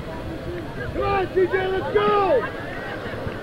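A young woman shouts loudly nearby, cheering.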